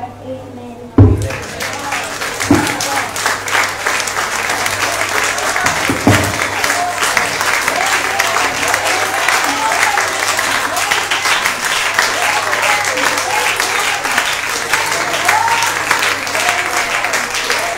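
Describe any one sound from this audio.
A congregation claps and cheers loudly.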